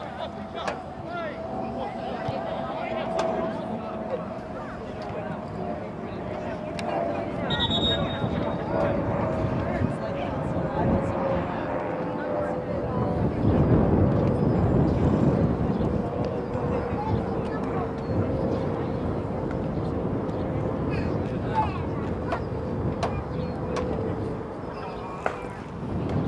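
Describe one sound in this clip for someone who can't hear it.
Young men call out to each other across an open field.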